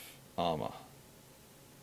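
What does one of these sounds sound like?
A man speaks briefly and calmly, close to a microphone.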